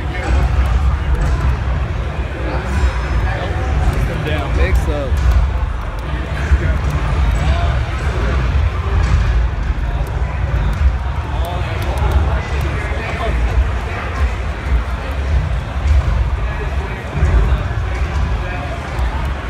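Punches, kicks and blasts from a fighting game crackle and thump through a loudspeaker.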